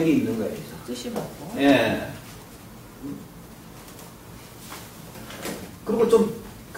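A middle-aged man speaks calmly and clearly.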